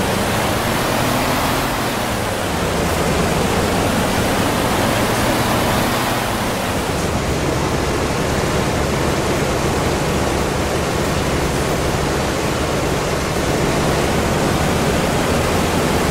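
Bus tyres roll on the road.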